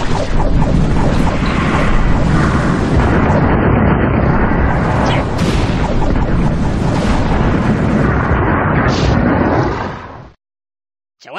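Swords clash and clang in a loud, busy battle.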